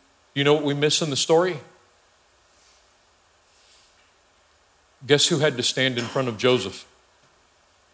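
A middle-aged man speaks calmly through a microphone in a large room.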